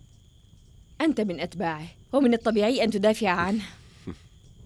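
A young woman speaks tensely and close by.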